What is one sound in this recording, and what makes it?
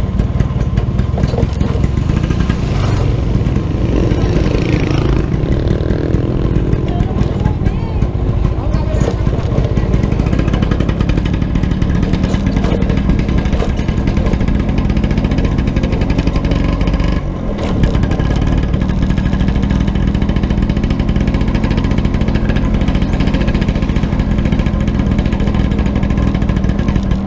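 A scooter engine hums steadily up close.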